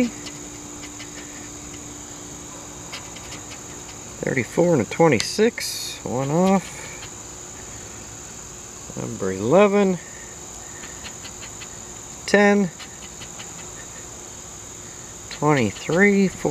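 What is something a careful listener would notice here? A scraper scratches at a paper card.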